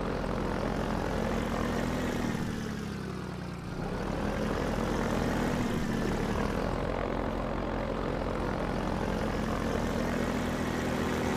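An airboat engine drones steadily, briefly dipping in loudness before rising again.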